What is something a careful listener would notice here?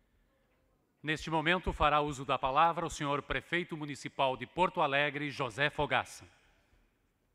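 A man speaks calmly into a microphone over loudspeakers in a large hall.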